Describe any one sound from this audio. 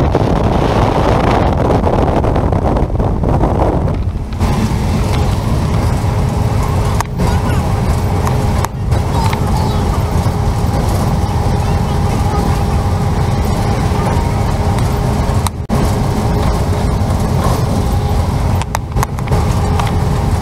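A vehicle's engine and tyres rumble steadily on the road.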